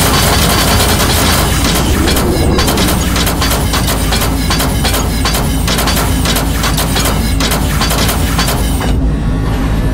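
Laser guns fire in a rapid, steady stream of shots.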